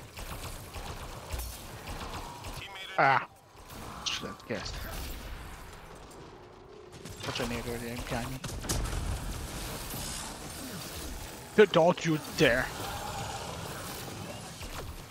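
Energy weapons zap and whine in bursts.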